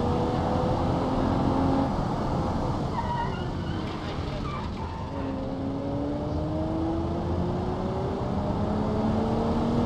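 A car engine hums, easing off and then revving up again as the car speeds up.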